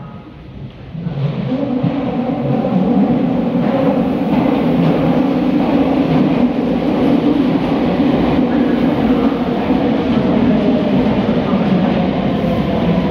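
A train rumbles into an echoing underground station and rolls past close by.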